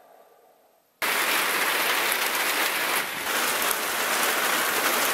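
Heavy rain pours down outdoors, hissing steadily.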